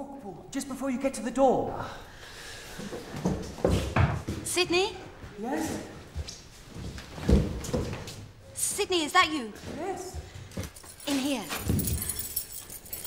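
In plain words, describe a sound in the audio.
A young woman speaks in a hushed, anxious voice.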